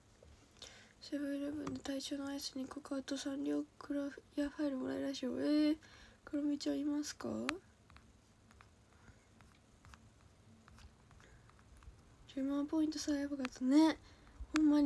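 A young woman speaks softly, close to a microphone.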